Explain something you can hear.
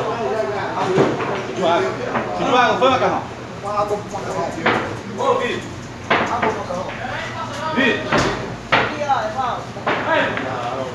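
Pool balls click sharply against each other.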